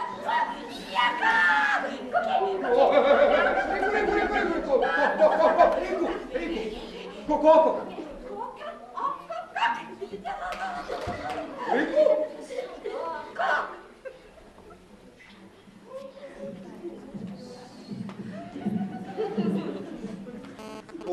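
Puppeteers speak in animated, playful character voices in a theatre.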